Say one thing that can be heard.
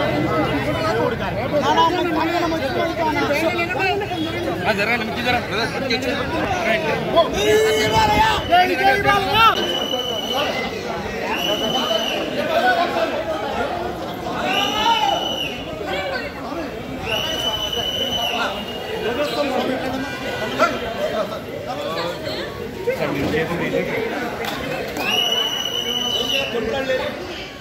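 A large crowd of men talks and shouts all around, close by.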